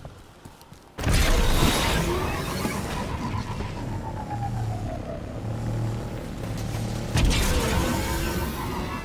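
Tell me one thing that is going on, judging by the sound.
A hover bike engine roars and whooshes as it speeds along.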